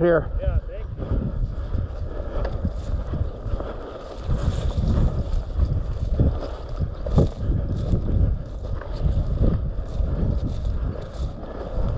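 Footsteps swish and crunch through dry tall grass.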